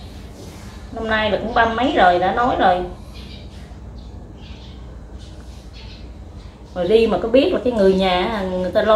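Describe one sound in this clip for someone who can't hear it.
A middle-aged woman speaks close by in an emotional voice.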